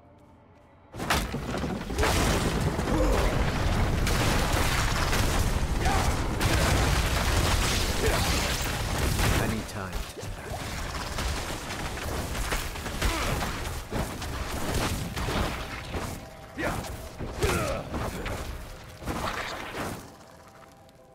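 Fiery magic blasts and crackles with heavy rumbling in a loud fight.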